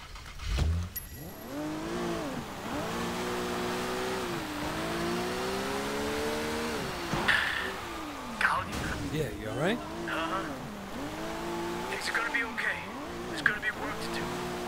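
A car engine starts and revs up and down as the car speeds along.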